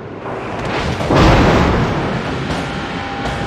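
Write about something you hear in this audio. Heavy naval guns fire with a deep, booming blast.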